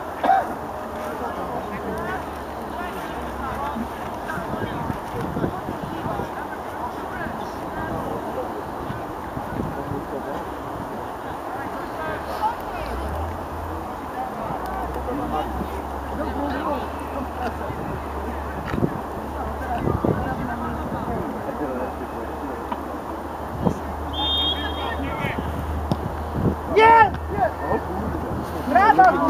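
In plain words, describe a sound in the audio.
Young football players shout to each other across an open pitch.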